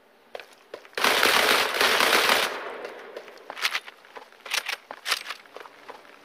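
Gunshots fire in a rapid burst, followed by a few single shots.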